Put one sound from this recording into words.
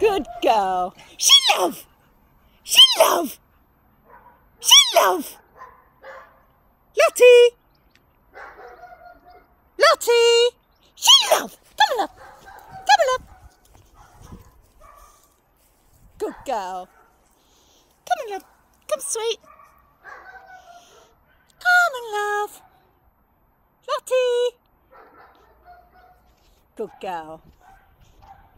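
A small terrier barks in short, sharp bursts.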